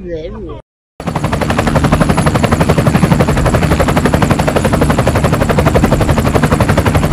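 A toy helicopter's rotor whirs with a fast, steady chopping.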